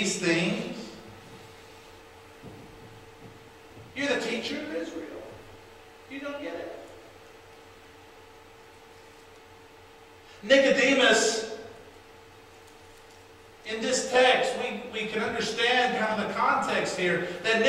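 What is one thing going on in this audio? A man speaks with animation through a microphone in a reverberant hall, pausing between phrases.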